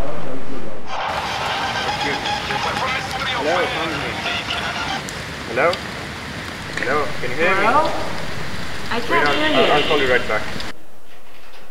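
A young man talks on a phone.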